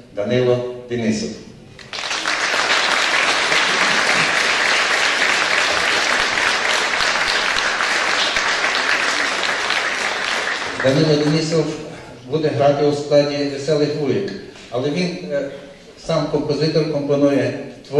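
A man speaks into a microphone in a large hall, amplified through loudspeakers.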